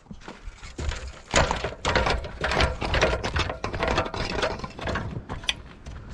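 Boots clank on metal ladder rungs.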